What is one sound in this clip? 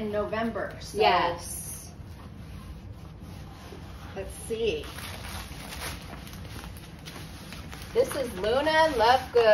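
Stiff paper rustles and crinkles as it is unrolled.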